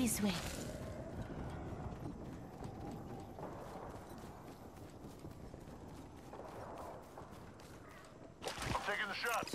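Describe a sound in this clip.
Footsteps thud quickly over dirt and grass.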